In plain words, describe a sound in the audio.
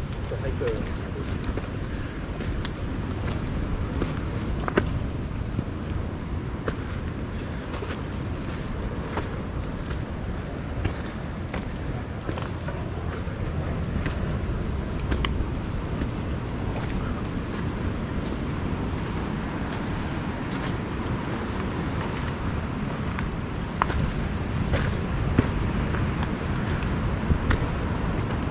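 Footsteps crunch on leaf litter along a dirt path.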